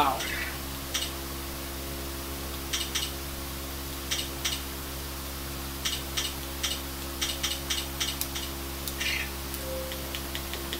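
Short menu blips sound from a television speaker.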